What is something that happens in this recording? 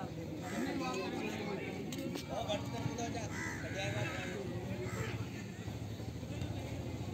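Young men shout and call out in the distance.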